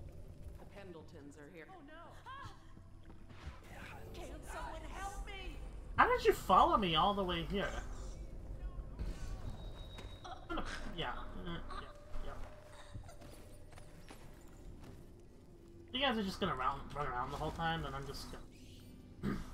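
A young woman talks with animation into a headset microphone.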